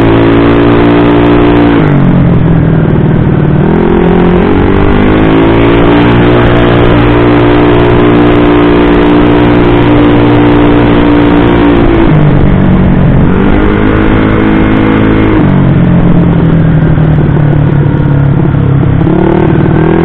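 A tuned bore-up scooter engine revs up and eases off.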